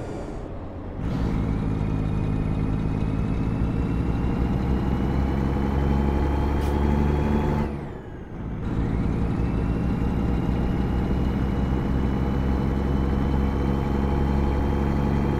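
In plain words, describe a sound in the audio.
A truck's diesel engine drones steadily, rising in pitch as it speeds up.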